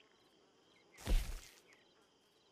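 A soft whoosh sounds as a menu opens.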